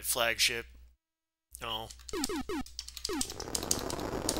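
Electronic game zaps sweep downward in pitch.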